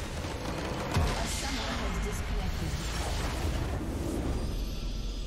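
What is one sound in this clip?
A structure explodes and crumbles with a loud crash.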